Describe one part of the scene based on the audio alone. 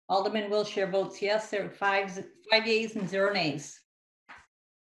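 A middle-aged woman speaks calmly over an online call.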